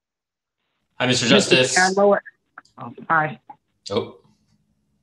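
A young man speaks over an online call.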